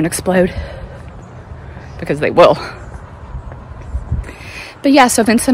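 A woman talks close up, a little out of breath.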